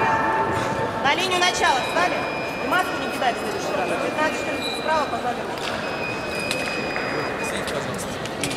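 Shoes squeak on a sports floor.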